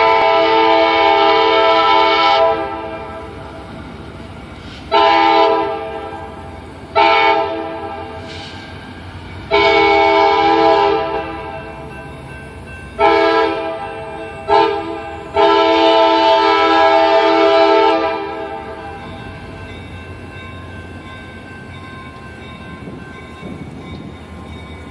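A diesel locomotive rumbles as it approaches slowly.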